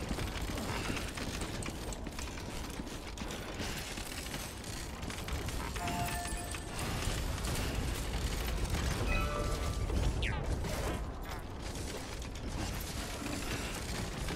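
Footsteps crunch on gravel and grass.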